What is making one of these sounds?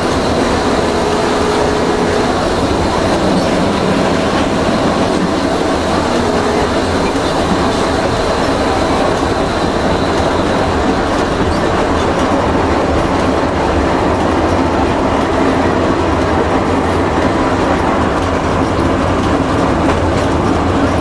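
A diesel engine drones loudly up close.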